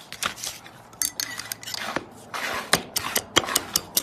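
A power drill drives a screw into wood.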